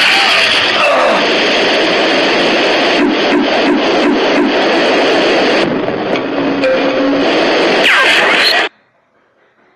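Loud, harsh game sound effects blare and then cut off abruptly.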